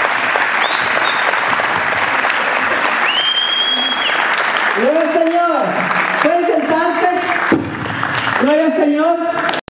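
A crowd of people cheers and chatters loudly.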